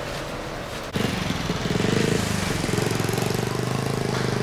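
A motorbike engine hums as it rides past.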